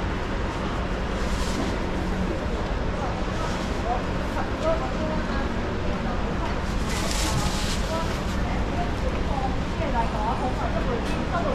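People murmur in the background of a busy indoor space.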